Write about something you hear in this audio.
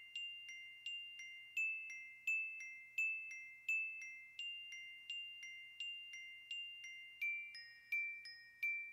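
A glockenspiel plays a slow, steady ringing melody, its metal notes struck one after another.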